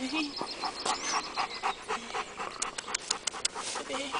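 A dog pants.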